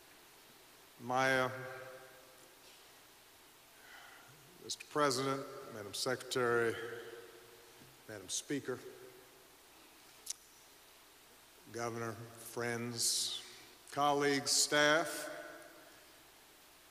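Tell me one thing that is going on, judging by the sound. A middle-aged man speaks slowly and solemnly into a microphone, with long pauses, in a large echoing hall.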